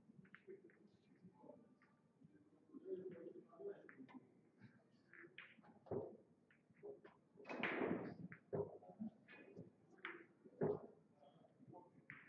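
Pool balls clack against each other as they are gathered and racked on a table.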